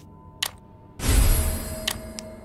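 A deep rumbling whoosh swells and fades.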